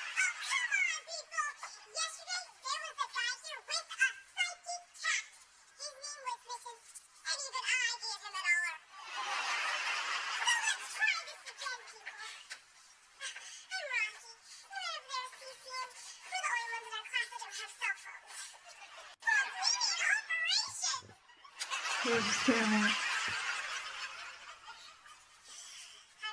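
A young woman speaks with animation, heard through a small speaker.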